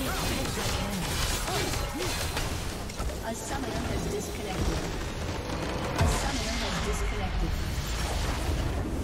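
Game combat effects clash and burst in a dense din.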